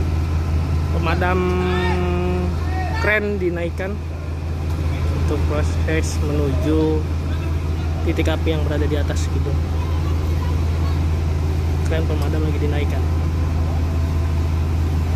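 A crowd of men talk among themselves outdoors.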